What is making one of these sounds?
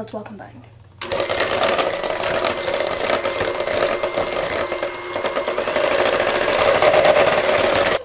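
An electric hand mixer whirs, beating batter in a metal bowl.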